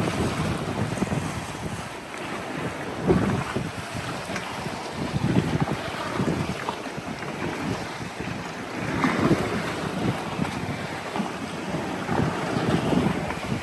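Wind blows across the water outdoors.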